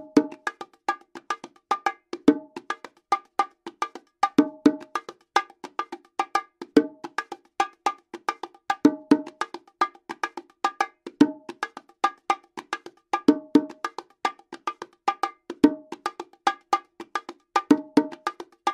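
Hands play a steady rhythm on bongo drums, with sharp slaps and ringing open tones.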